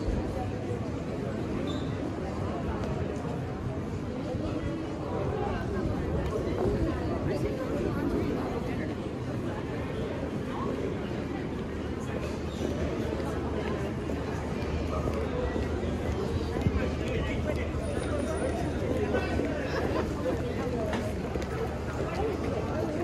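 Footsteps tap on cobblestones nearby.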